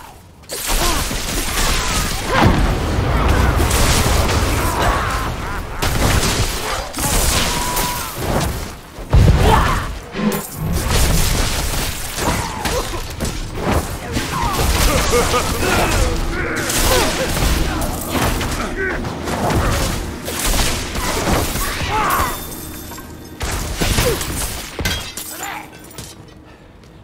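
Lightning spells crackle and zap.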